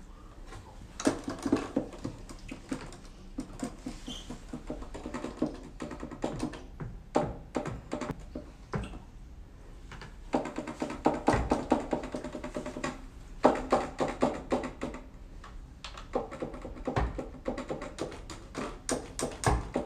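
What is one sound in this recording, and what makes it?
Keys on a small keyboard clatter and tap as a man plays.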